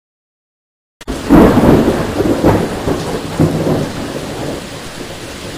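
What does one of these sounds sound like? Thunder rumbles and cracks nearby.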